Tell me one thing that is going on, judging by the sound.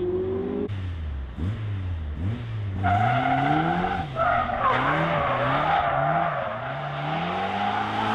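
A small racing car engine revs hard, its pitch rising and falling in bursts.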